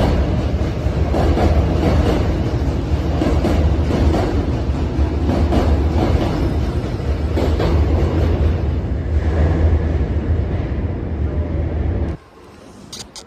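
A train rumbles loudly as it pulls away from the platform.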